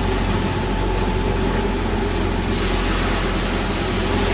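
A motorboat speeds by on the water.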